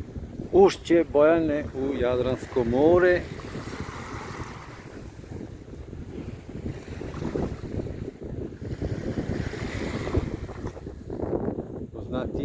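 Small waves lap gently against a sandy shore.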